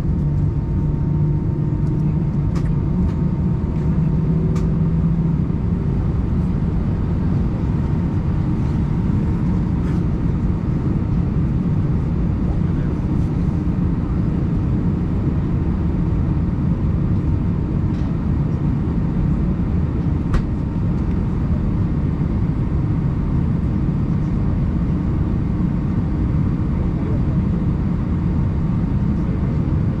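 Jet engines hum steadily in a low drone inside an aircraft cabin.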